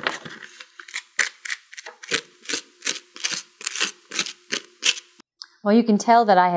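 A sanding stick scrapes rapidly against foam.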